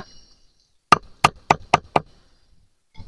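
A wooden mallet knocks a brick into place with quick, sharp taps.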